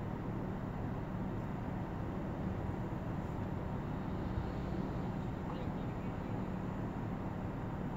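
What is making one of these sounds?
A car engine idles with a low, steady rumble.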